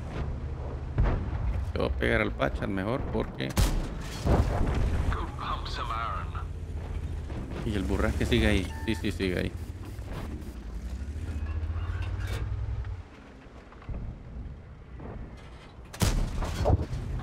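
Tank guns fire with sharp booms.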